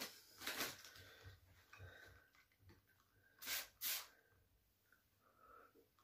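A spray bottle hisses in short bursts.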